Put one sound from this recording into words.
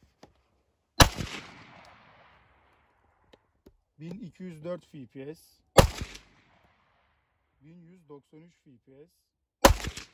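A pistol fires loud, sharp shots that ring out outdoors.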